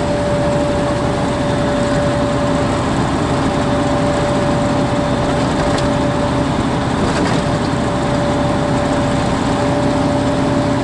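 Tyres roll on the road with a steady rush.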